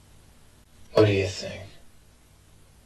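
A man speaks a short question in a low, calm voice.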